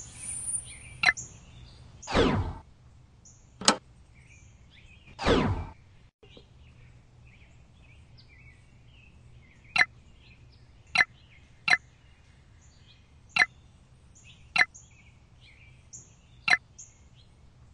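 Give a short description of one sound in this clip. Short sharp game clicks sound now and then.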